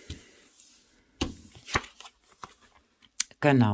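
Cards tap and rustle on a table.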